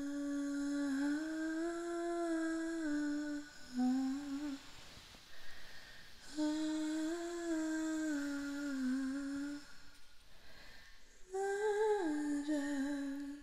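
A young woman sings long, slow held notes softly and close by.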